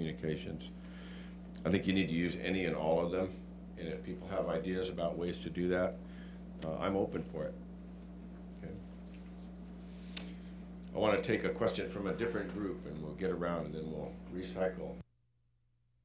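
A middle-aged man speaks calmly into a microphone, heard through a loudspeaker in a room.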